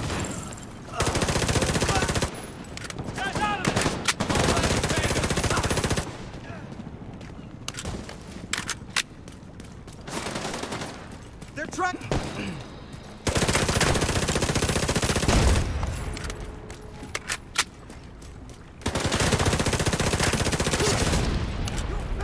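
Automatic gunfire rattles in loud rapid bursts.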